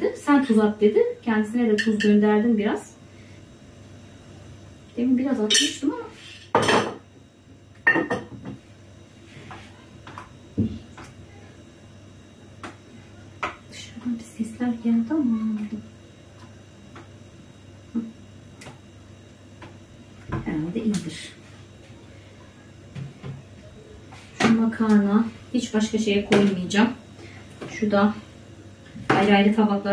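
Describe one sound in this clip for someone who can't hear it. A woman talks calmly close by, in bursts with pauses.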